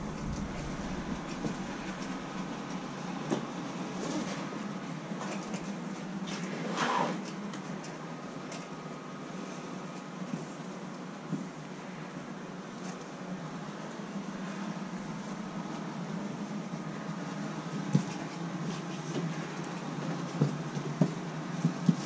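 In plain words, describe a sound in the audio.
Soft fabric rustles as it is shaken out and folded.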